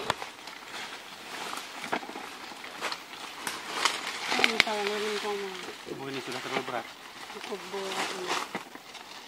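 Leafy branches rustle and snap as they are pulled.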